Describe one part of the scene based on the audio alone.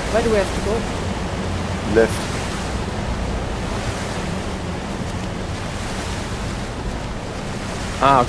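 Water splashes softly as someone swims.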